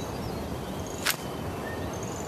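A weapon clicks as it is swapped.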